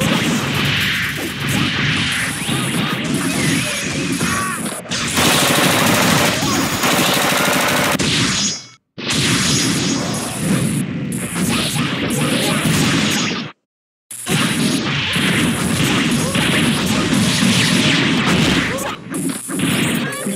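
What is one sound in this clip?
Rapid punches and blasts from a fighting game hit in quick bursts.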